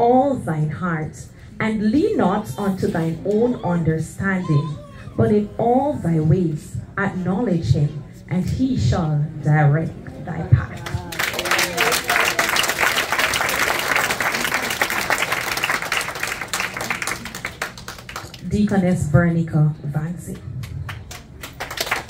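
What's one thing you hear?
A woman speaks into a microphone over loudspeakers in a large room.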